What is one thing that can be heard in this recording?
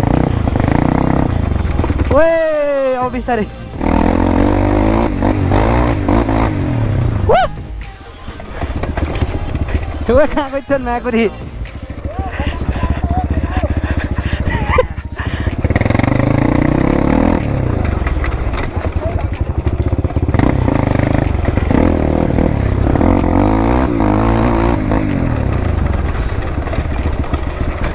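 A dirt bike engine drones and revs up and down close by.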